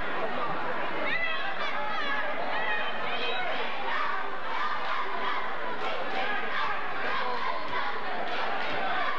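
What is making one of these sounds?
A large crowd chatters and cheers in an echoing gym.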